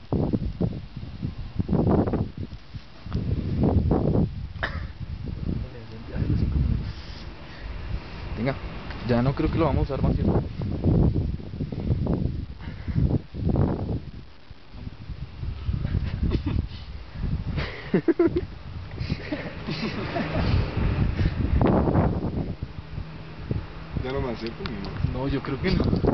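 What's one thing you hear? Young men talk casually nearby.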